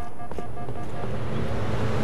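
An electronic warning alarm beeps rapidly.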